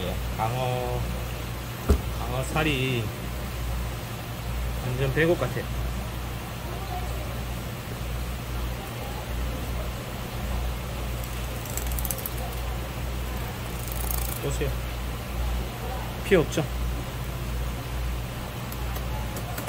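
A knife slices softly through raw fish.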